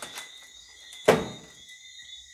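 A door bangs against a wall.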